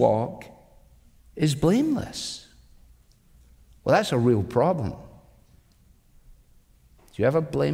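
An older man speaks emphatically into a microphone, with pauses between phrases.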